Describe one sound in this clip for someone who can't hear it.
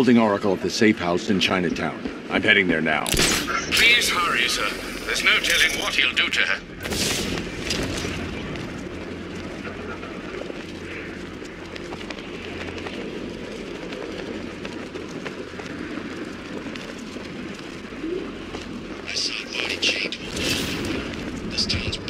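Wind rushes steadily past during a glide.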